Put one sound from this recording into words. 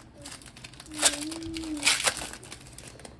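A foil card wrapper tears open.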